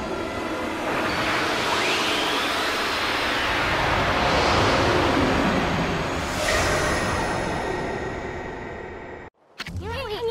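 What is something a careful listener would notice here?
A gust of wind whooshes and swirls, then fades.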